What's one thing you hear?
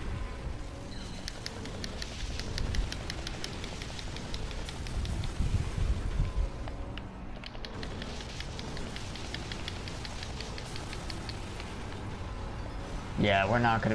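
Rapid gunfire crackles in quick bursts.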